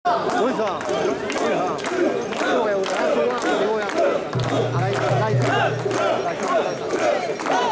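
A crowd of men chants loudly in rhythm outdoors.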